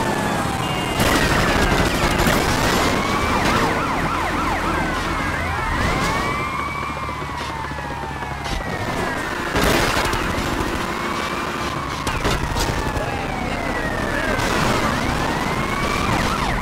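Cars crash into each other with loud metal bangs.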